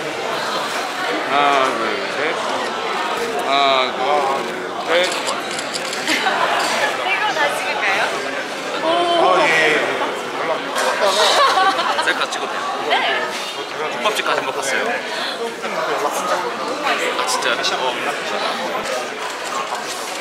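A young woman talks and laughs nearby.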